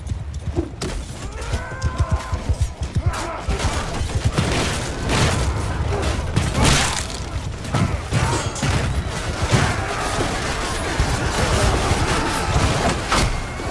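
Soldiers shout in a large crowd.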